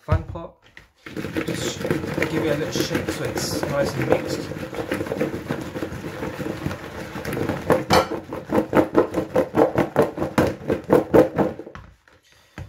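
Potatoes and carrots rattle and tumble as a plastic bowl is shaken.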